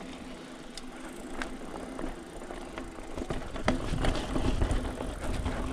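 A bicycle rattles and clicks over roots and rocks.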